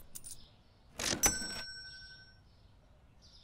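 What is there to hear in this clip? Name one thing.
A cash register rings with a bright chime.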